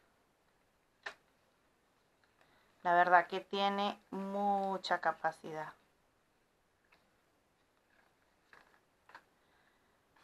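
Stiff scrapbook paper rustles and crinkles as it is folded and unfolded by hand.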